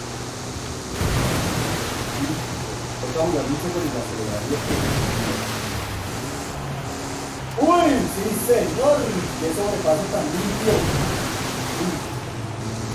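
Water splashes loudly under tyres.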